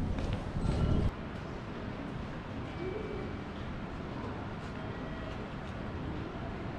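A crowd murmurs faintly in a large echoing hall.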